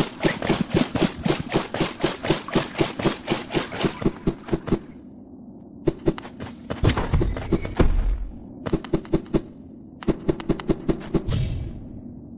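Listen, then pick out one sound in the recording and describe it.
Quick footsteps patter in a fast, even rhythm.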